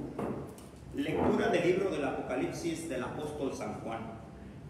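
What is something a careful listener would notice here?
A man speaks calmly into a microphone nearby.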